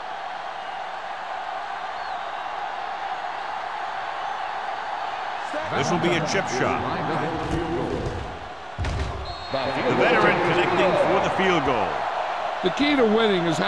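A stadium crowd roars steadily in a large open arena.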